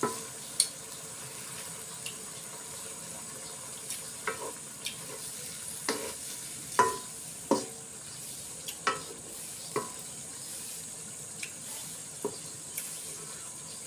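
A wooden spatula scrapes and knocks against a metal wok.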